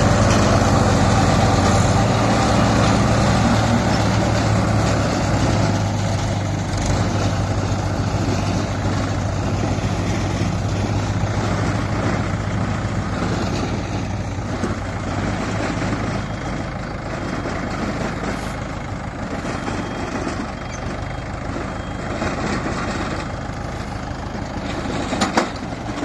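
A baler clatters as it gathers straw.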